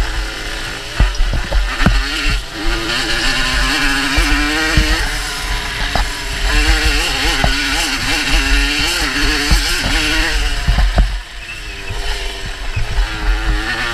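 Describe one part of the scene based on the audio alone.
A dirt bike engine revs hard up close, rising and falling in pitch.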